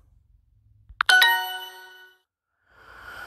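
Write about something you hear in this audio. A bright chime rings out from a phone.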